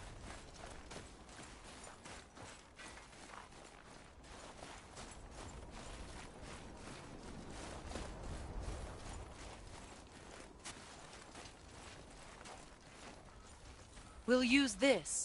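Heavy footsteps crunch steadily through snow.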